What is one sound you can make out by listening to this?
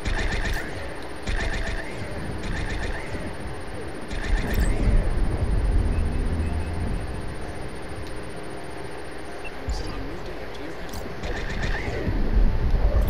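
Electronic beeps chirp as control buttons are pressed.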